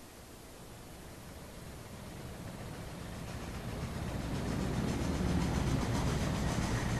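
A flying airship's engines hum and whoosh.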